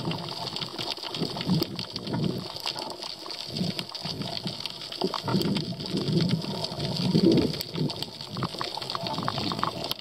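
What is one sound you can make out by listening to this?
Water swirls and rumbles in low bursts underwater.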